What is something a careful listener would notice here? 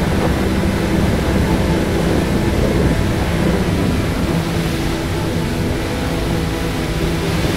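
Water splashes and churns behind a speeding boat.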